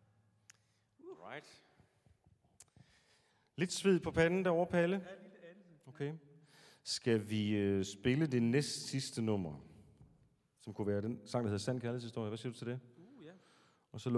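A man sings expressively into a microphone in a reverberant hall.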